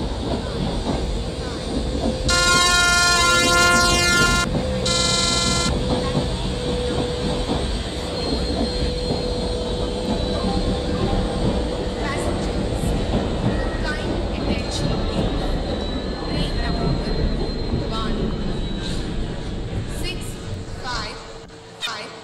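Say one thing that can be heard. A train engine rumbles steadily as it rolls along the tracks.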